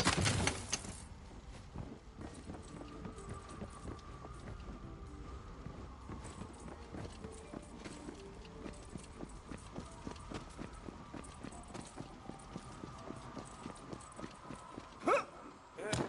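Footsteps crunch over snow and wooden planks.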